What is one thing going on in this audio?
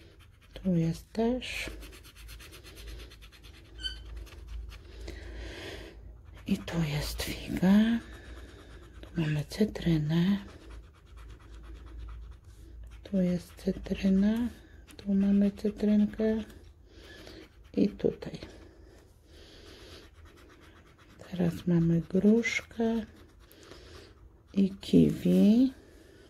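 A coin scrapes across a scratch card with a soft rasping sound.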